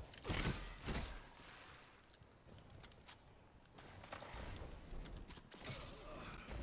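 Heavy gunshots boom in short bursts.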